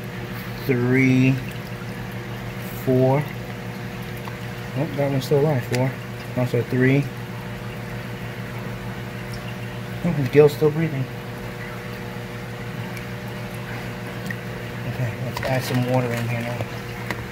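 Water sloshes and splashes softly as hands move through it.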